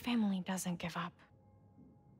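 A woman speaks softly and warmly.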